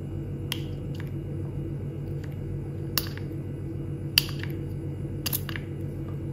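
A pump bottle clicks as it is pressed.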